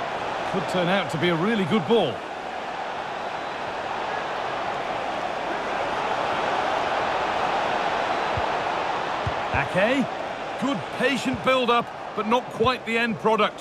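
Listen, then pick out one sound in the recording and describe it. A stadium crowd roars steadily.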